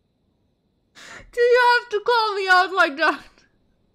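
A young woman speaks with animation into a close microphone.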